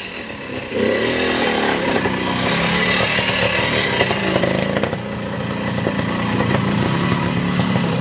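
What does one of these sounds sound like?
Tyres knock and scrape over rocks and roots.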